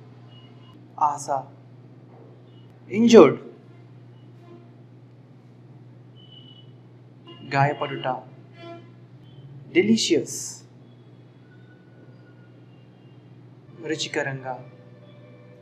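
A man speaks calmly and clearly, close to a microphone, in short separate words with pauses between them.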